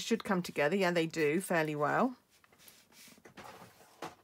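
A sheet of card slides softly across a mat.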